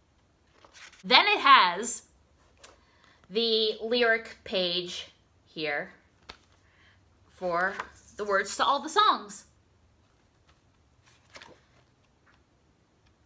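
Paper pages rustle as a booklet is handled.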